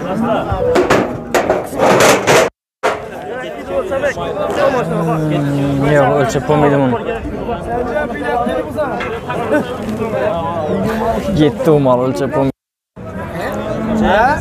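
Several men talk loudly over one another, close by, outdoors.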